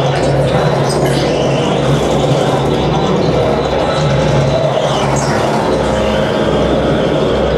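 Loud electronic music plays through loudspeakers with a steady low drone and dense noisy textures.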